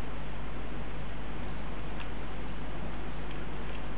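Footsteps scuff softly on a stone floor.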